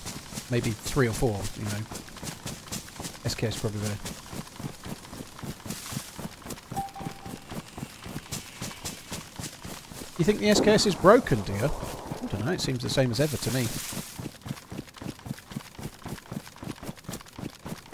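Footsteps rustle quickly through tall grass and undergrowth.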